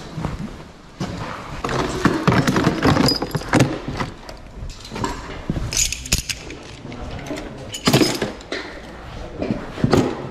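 Metal tools clatter and rattle in a case.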